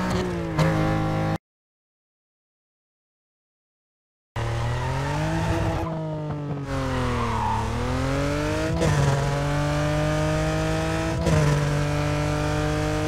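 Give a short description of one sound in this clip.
A sports car engine roars as it accelerates hard, shifting up through the gears.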